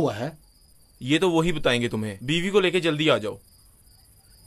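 A middle-aged man answers in a low, firm voice.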